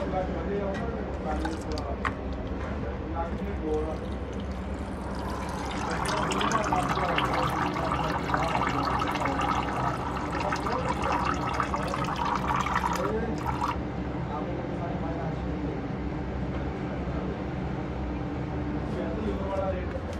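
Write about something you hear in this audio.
A thin stream of oil trickles into a plastic funnel.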